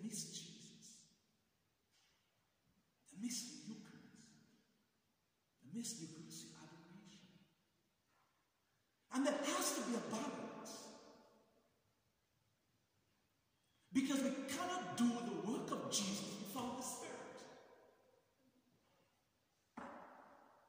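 A man speaks slowly and solemnly in a large echoing hall, with pauses between phrases.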